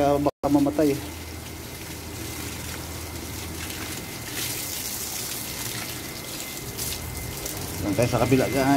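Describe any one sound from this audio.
Water gushes out of a hose and splashes onto the ground.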